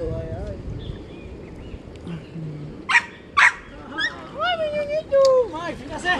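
Water laps and splashes gently around a wading man.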